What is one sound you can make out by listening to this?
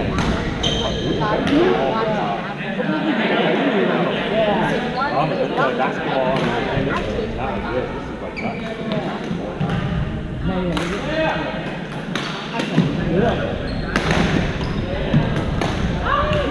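Young men and women call out and chatter across a large echoing hall.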